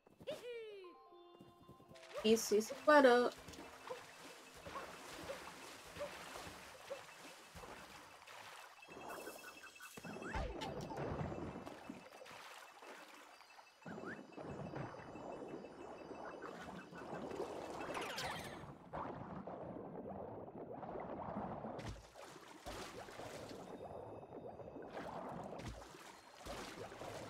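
Video game sound effects chime and jingle.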